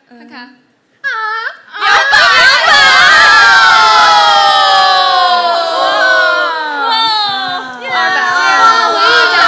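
Several young women cry out loudly and excitedly through microphones.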